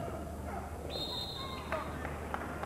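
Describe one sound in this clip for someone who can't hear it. A referee blows a sharp whistle.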